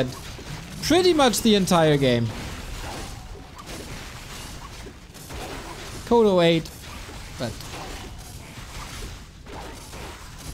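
Weapons clash and spells burst in a game battle.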